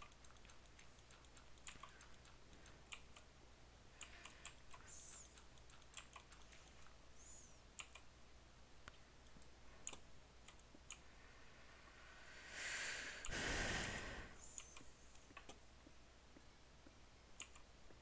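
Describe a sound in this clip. A pickaxe chips and cracks blocks in a video game, in short quick clicks.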